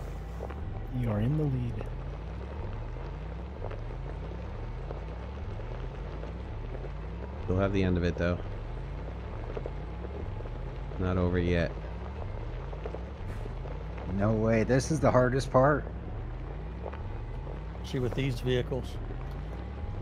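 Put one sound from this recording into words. A man talks calmly into a close microphone in short bursts.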